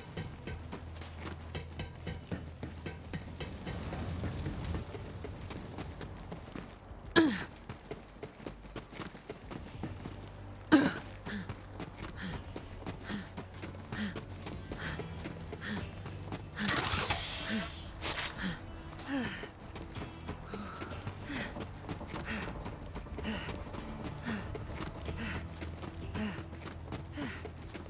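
Footsteps crunch steadily on dirt and gravel.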